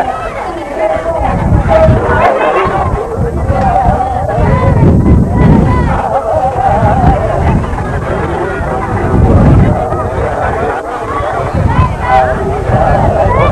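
Children chatter and call out nearby outdoors.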